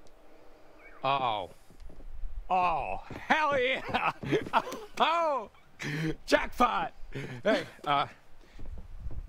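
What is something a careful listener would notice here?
A young man shouts excitedly.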